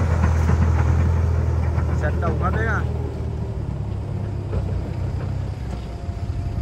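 A heavy truck engine rumbles loudly and slowly fades as it pulls away.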